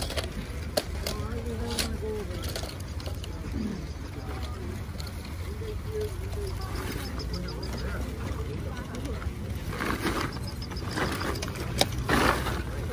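Small metal toy cars clink and rattle as a hand sorts through them.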